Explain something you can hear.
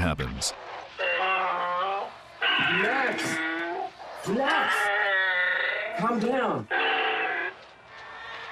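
A man shouts urgently to calm someone down.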